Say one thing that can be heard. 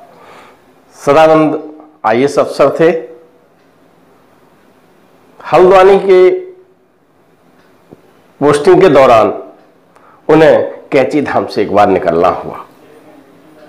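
A middle-aged man speaks calmly and clearly into a close microphone, in short phrases with pauses.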